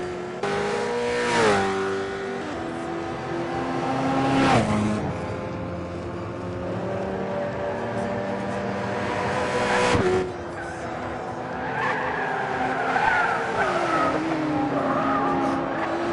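Race cars whoosh past one after another.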